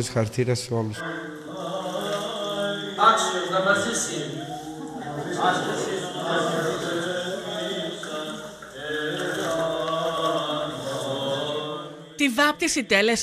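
A man chants in a melodic voice in an echoing room.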